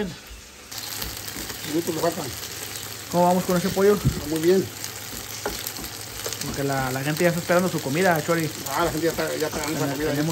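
Metal tongs clink against a pan.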